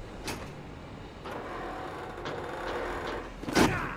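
A metal grate rattles and scrapes open.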